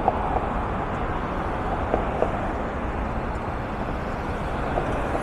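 Tyres roll past on the road.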